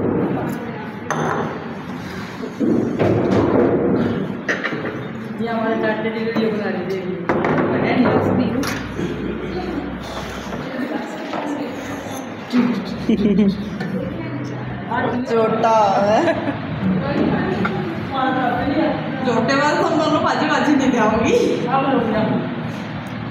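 Several adults talk together nearby, filling a room with chatter.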